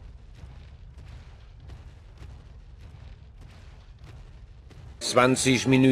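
Heavy footsteps thud steadily on soft ground.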